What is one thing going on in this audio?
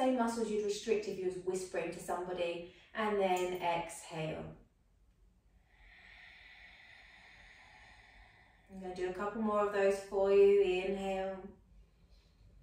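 A young woman speaks calmly and softly close to a microphone.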